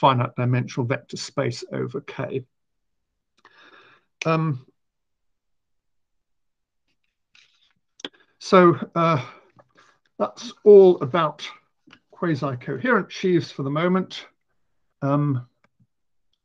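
A middle-aged man speaks calmly through an online call microphone, pausing now and then.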